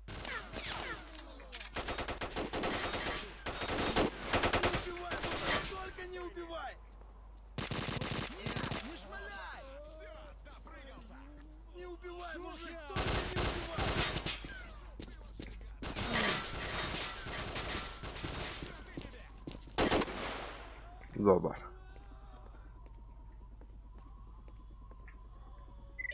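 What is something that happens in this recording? Footsteps crunch on gravel and ground.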